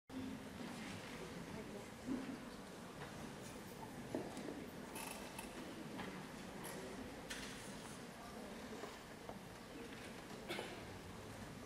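A small ensemble of strings and harp plays softly in a large hall.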